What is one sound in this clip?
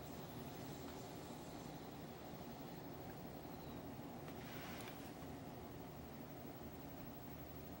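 A woman breathes out a puff of vapour softly.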